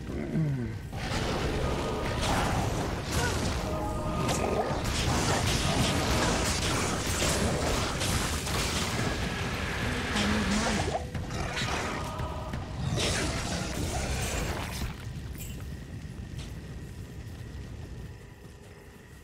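Game sound effects of fire and clashing combat play loudly.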